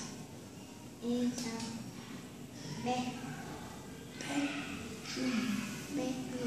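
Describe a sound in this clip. A young girl speaks nearby in short phrases.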